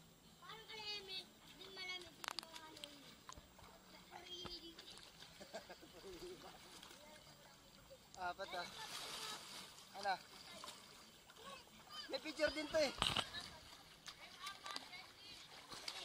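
Water splashes as swimmers kick and paddle.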